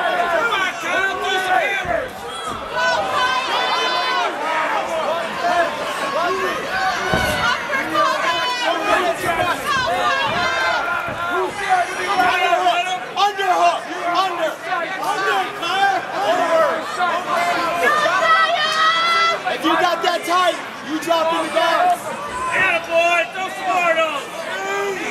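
A crowd of spectators shouts and cheers loudly nearby, echoing in a large hall.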